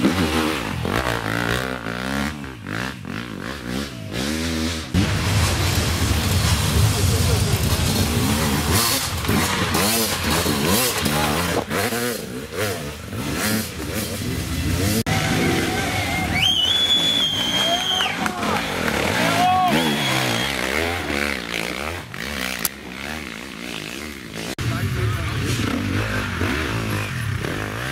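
Dirt bike engines rev and roar loudly, rising and falling in pitch.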